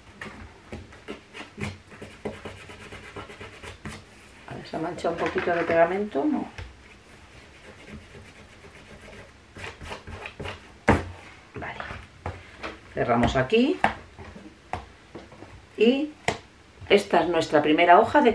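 Sheets of card rustle and tap softly as they are handled.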